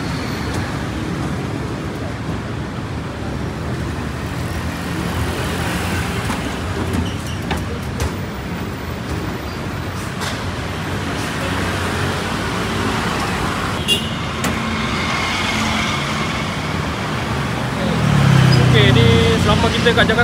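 City traffic rumbles steadily below, outdoors.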